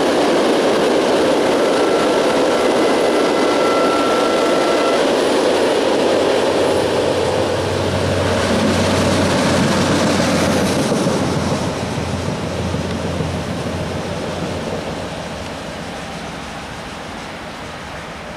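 A long freight train rumbles and clatters past close by, then fades into the distance.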